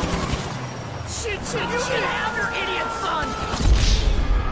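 A man shouts.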